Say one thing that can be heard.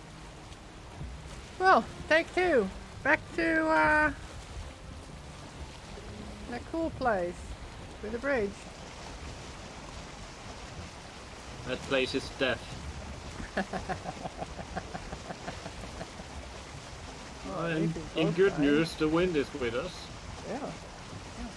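Water splashes against the hull of a wooden boat.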